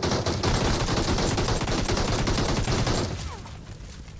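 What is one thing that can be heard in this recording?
A vehicle explodes with a loud, rumbling boom.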